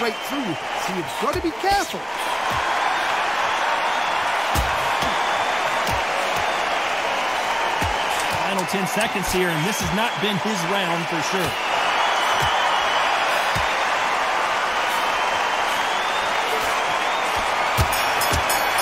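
Gloved punches land with dull thuds.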